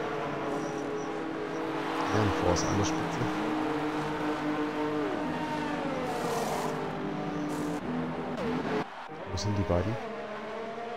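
A racing car engine hums and revs loudly.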